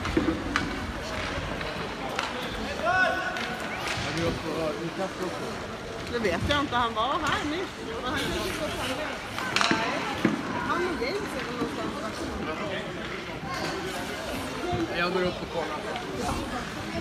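Young hockey players shout and call out across a large echoing ice rink.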